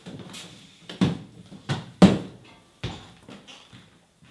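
Footsteps walk away across a hard floor.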